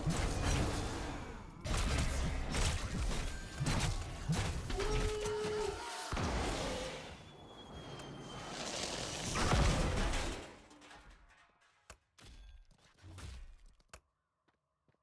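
Fighting sound effects from a video game clash and blast in quick bursts.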